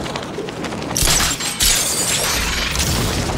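Wind rushes loudly past a figure diving through the air.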